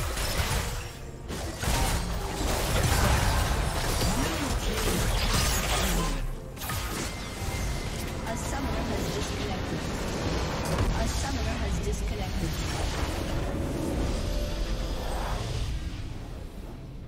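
Game combat effects clash and burst loudly.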